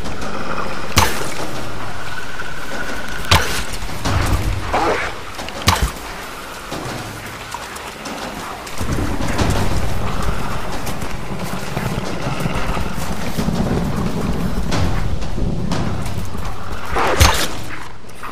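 A bowstring twangs sharply as arrows are loosed, again and again.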